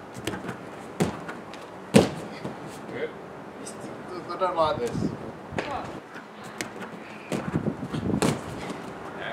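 Feet thud onto a gym mat as a backflip lands.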